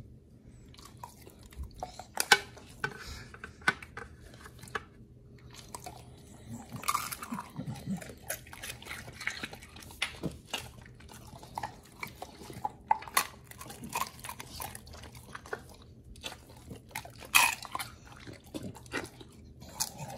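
A dog chews and crunches a treat.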